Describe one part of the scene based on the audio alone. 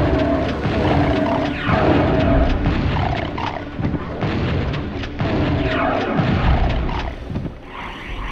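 Game gunshots fire in quick bursts.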